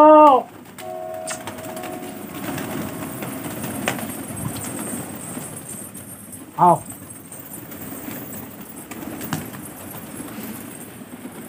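Many pigeons flap their wings in a busy flutter.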